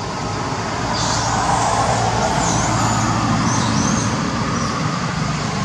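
A monkey gives short, high squeaky calls.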